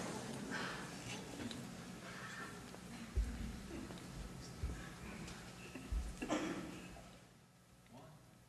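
A big band plays jazz with brass and saxophones.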